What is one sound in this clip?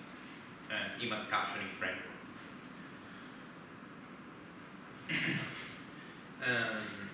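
A young man speaks calmly in a large echoing room, with pauses.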